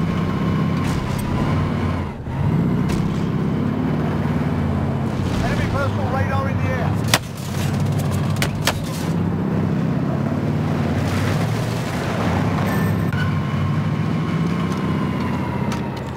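A heavy truck engine rumbles steadily at close range.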